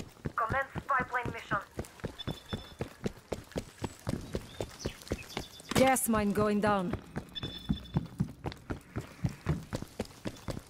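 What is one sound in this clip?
Quick footsteps run on hard ground.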